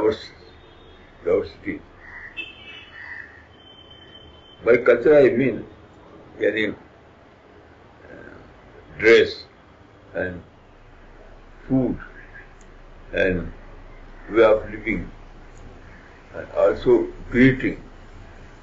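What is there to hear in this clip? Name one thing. An elderly man speaks calmly and slowly, with pauses, close to a microphone.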